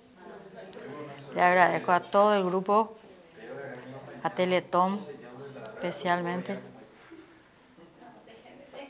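A middle-aged woman speaks calmly and close into a microphone.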